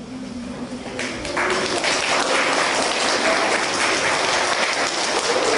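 A crowd of children applauds loudly.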